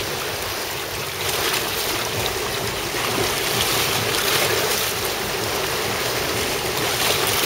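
Waves splash and wash against rocks close by.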